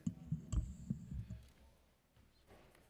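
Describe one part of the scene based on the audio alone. A man talks quietly close by.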